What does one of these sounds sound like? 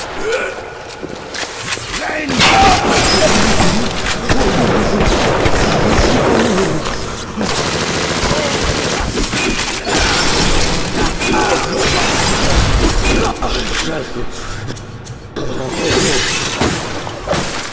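A shotgun fires with loud blasts.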